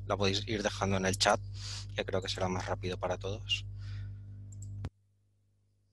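A man speaks calmly through a headset microphone, heard over an online call.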